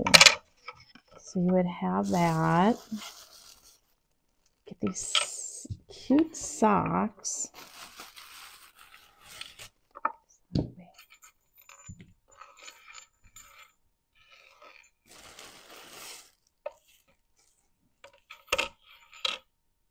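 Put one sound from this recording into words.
Paper scrapes and rubs on a table.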